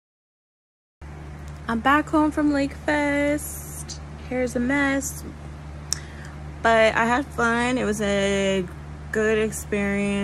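A young woman talks animatedly close to a phone microphone.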